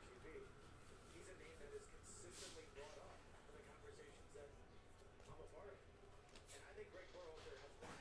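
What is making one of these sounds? Trading cards flick and shuffle in a man's hands.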